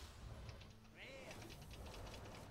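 A bright chiming shimmer rings out from a glowing game card.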